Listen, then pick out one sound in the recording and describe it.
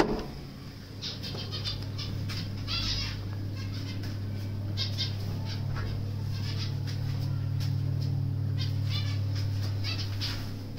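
Small birds chirp faintly.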